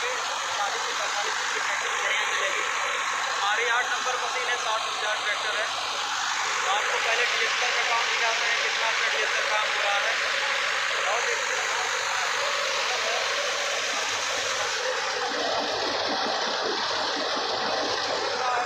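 A grain cleaning machine runs with a steady loud whirring and rattling.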